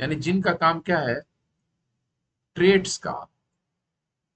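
A man speaks calmly and clearly into a close microphone, in short phrases with pauses.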